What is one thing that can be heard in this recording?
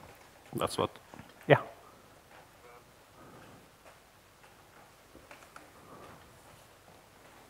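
A man speaks into a microphone in a large echoing hall, with pauses.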